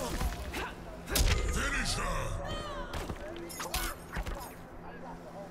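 Punches and kicks land with sharp, heavy thuds.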